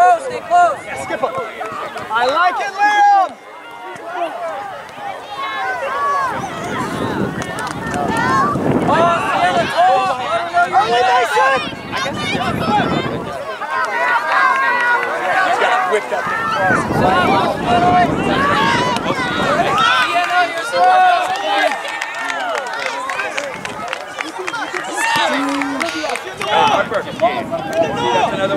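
Children call out to each other across an open field.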